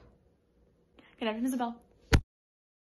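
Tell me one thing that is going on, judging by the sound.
A young woman laughs briefly.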